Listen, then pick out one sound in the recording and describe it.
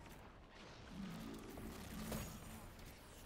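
A fiery blast bursts and roars nearby.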